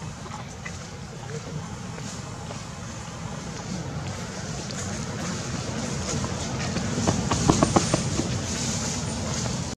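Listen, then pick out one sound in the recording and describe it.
Dry leaves rustle and crunch under a monkey's feet.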